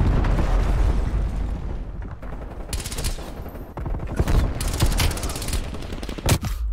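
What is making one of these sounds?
Rapid gunfire bursts loudly at close range.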